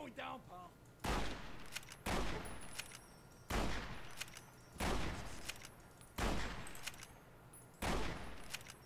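Gunshots ring out one at a time, with a sharp crack and a short echo.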